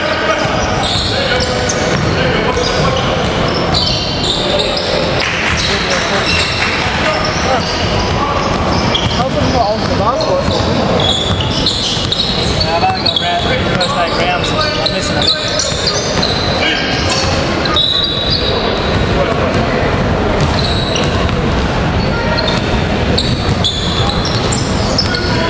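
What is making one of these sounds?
Basketball shoes squeak on a hardwood court in a large echoing gym.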